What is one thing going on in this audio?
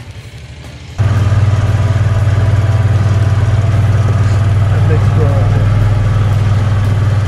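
A utility vehicle's engine rumbles loudly up close while riding.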